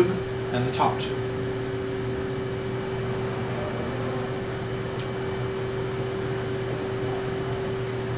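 Metal tubes clink and rattle as a man adjusts a frame.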